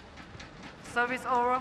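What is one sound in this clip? Shoes squeak on a court mat.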